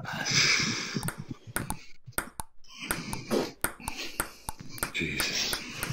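A ping pong ball clicks sharply against paddles and the table.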